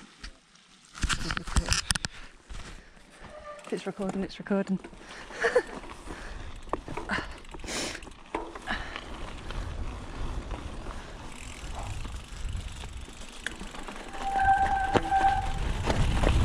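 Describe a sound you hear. A bicycle rattles over bumps.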